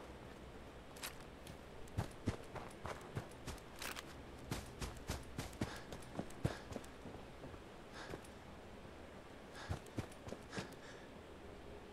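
Footsteps thud at a walking pace.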